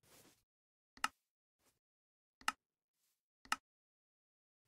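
Menu buttons click sharply a few times.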